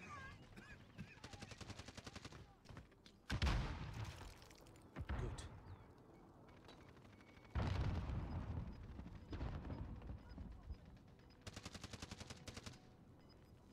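Automatic rifle fire crackles in bursts.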